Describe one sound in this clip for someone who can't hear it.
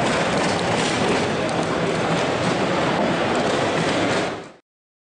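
A crowd murmurs and chatters in a busy, noisy hall.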